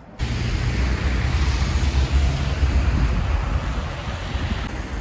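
Traffic rumbles past on a road.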